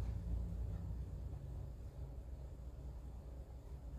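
A paintbrush dabs and strokes softly on canvas.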